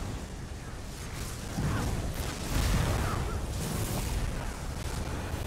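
Magic spells crackle and burst in a fantasy battle.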